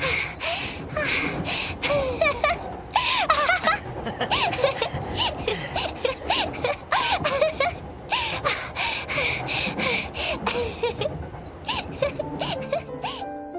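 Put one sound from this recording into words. A young woman laughs and talks cheerfully nearby.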